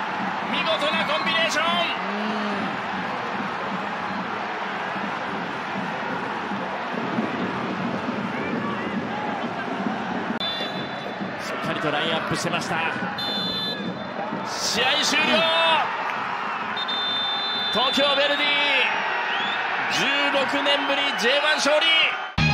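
A large stadium crowd roars and chants throughout.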